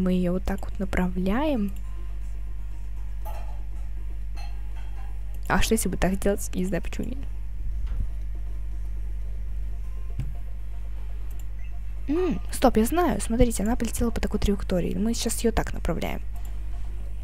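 A young woman speaks into a headset microphone in short bursts, with pauses between them.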